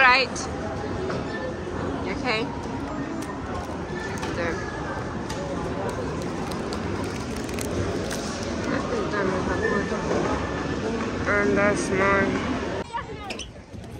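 A paper bag rustles and crinkles close by.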